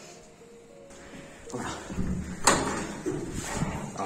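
A heavy metal door clanks as it is pulled open.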